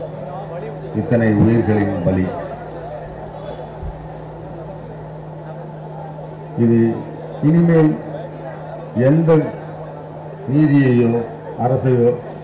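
An elderly man speaks slowly and forcefully into a microphone over a loudspeaker, in bursts with long pauses.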